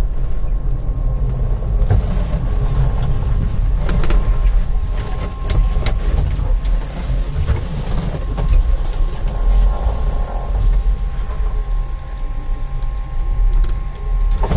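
A truck's cab rattles and knocks over a bumpy road.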